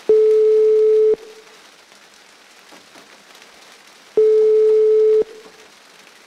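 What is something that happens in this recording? A phone line sounds a steady beeping tone.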